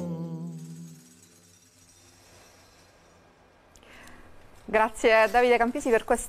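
A man sings into a microphone in a sustained, ringing voice.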